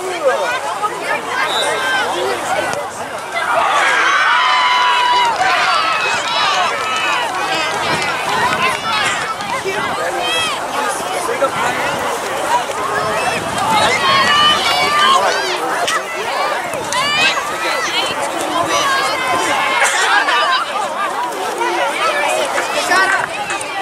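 A crowd of young people chatter and call out nearby, outdoors.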